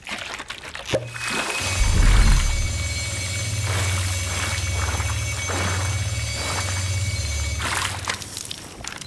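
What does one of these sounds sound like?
A device sprays a crackling electric jet with a deep steady hum.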